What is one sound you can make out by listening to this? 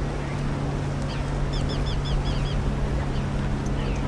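A young woman shouts rowing commands.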